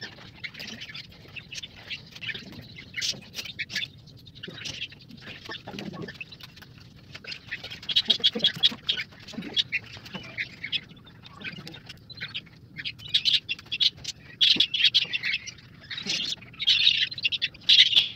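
Eggshell cracks and crunches as fingers pick it apart.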